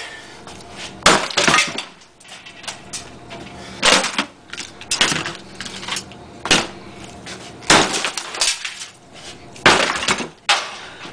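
Hard objects knock and clatter as they are set down on a bench, one after another.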